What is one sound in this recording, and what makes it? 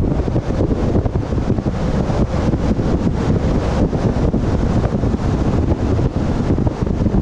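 Tyres roll steadily on a paved road.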